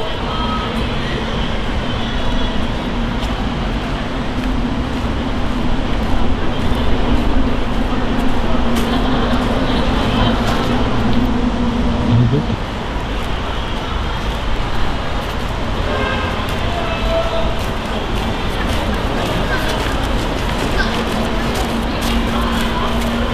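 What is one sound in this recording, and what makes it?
Footsteps fall softly on a rubber track.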